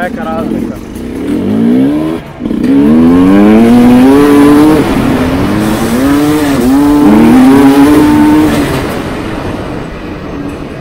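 A dirt bike engine roars as it pulls away, climbing through the gears.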